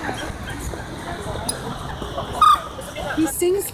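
A water bird splashes in water.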